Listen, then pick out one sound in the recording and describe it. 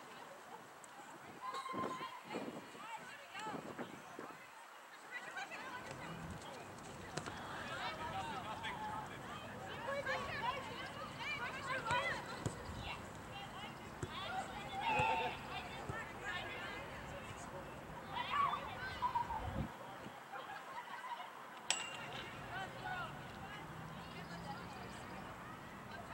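Young women players and spectators shout and call out across an open field.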